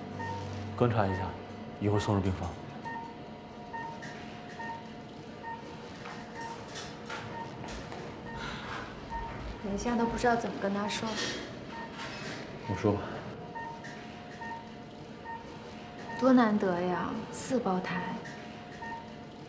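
A patient monitor beeps steadily.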